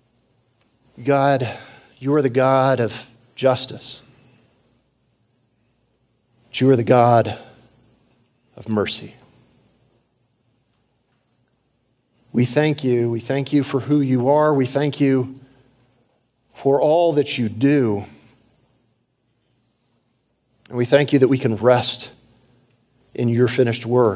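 A man speaks slowly and solemnly into a microphone, with long pauses.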